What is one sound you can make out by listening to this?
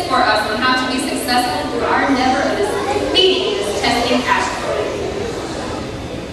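A crowd of young people chatter and call out in a large echoing hall.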